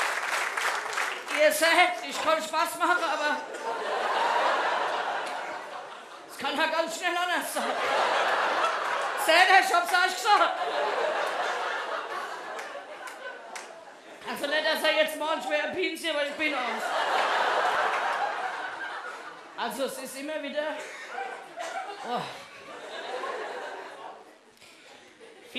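An audience laughs loudly in bursts.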